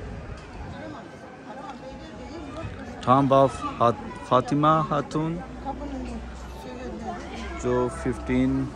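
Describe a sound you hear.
People chatter quietly in the background outdoors.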